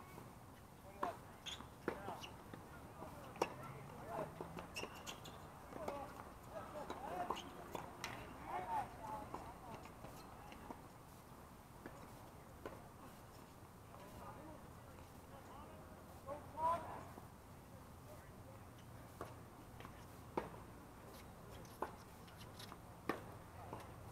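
Tennis balls are struck with rackets in sharp pops, some distance away, outdoors.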